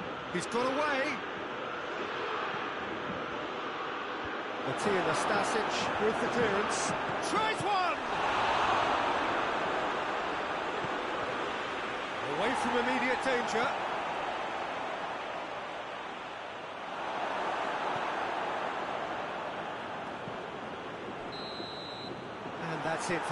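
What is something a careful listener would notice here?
A stadium crowd roars steadily, swelling at times.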